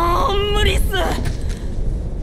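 A young man shouts with a strained voice.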